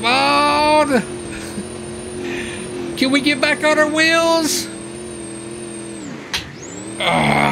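A car engine drones steadily, then winds down.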